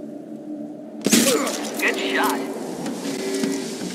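A sniper rifle fires a single shot.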